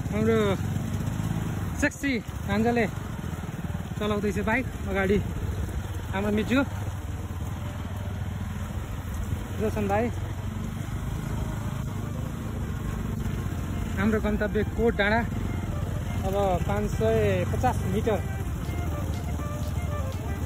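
A motorcycle engine hums steadily at low speed.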